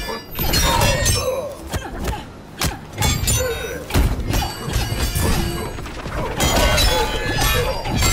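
A man grunts and shouts with each strike.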